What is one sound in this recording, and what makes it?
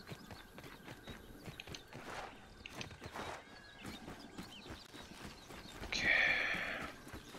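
Light footsteps patter quickly on a hard surface.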